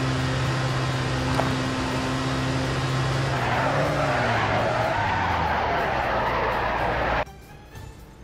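A car engine roars loudly at speed.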